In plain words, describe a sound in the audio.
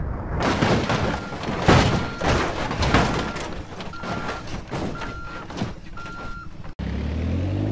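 Water splashes as a vehicle falls in.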